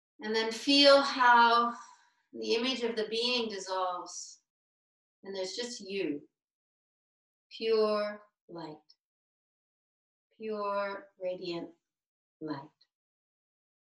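A man speaks with animation through an online call, in short bursts with pauses.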